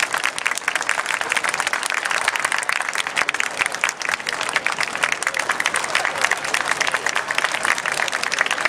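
A brass band plays outdoors.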